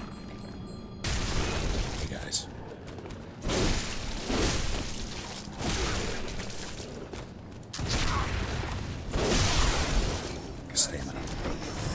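Blades slash and clash in a fight.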